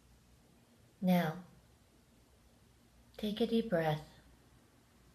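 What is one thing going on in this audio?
A middle-aged woman speaks briefly and calmly, close to the microphone.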